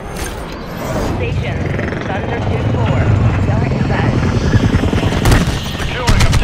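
A helicopter's rotor thrums steadily close by.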